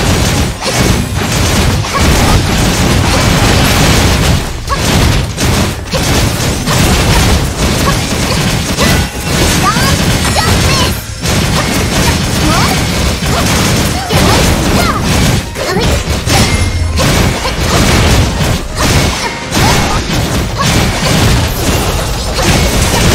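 Sword slashes and magic blasts whoosh and crash rapidly in a game battle.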